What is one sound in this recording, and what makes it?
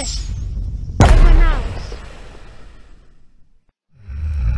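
A firework bursts with a loud bang that crackles and slowly fades.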